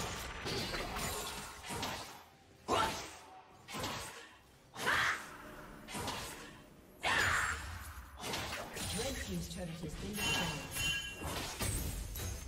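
Magic blasts and weapon hits burst and crackle in a fast fight.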